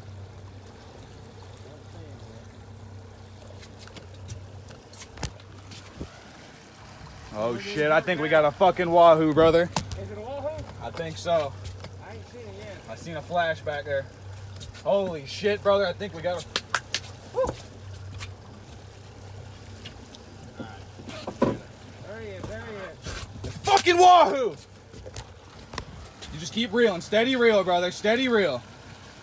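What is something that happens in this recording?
Water rushes past a moving boat.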